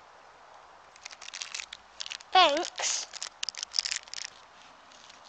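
A snack wrapper crinkles.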